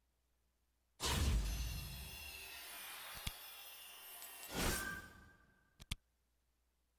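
A triumphant game fanfare plays loudly, then fades.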